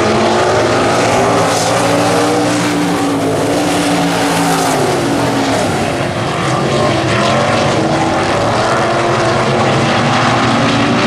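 Several race car engines roar loudly and rev up and down.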